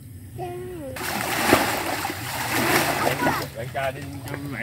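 Water splashes loudly as someone thrashes through it.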